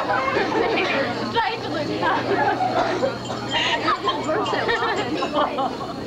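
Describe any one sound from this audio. A girl laughs nearby.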